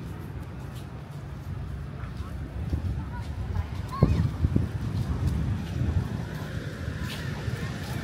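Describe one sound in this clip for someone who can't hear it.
Wind blows outdoors and buffets the microphone.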